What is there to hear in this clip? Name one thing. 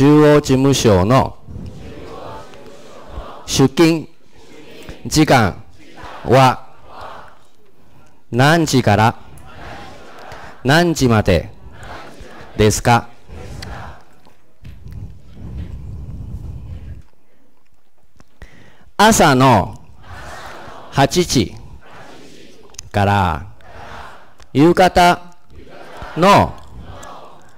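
A young man speaks slowly and clearly into a microphone, pausing between phrases.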